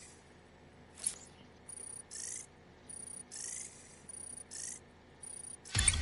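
Short electronic ticks sound in quick succession.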